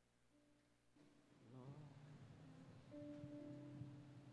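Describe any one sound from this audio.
An electronic keyboard plays soft sustained chords.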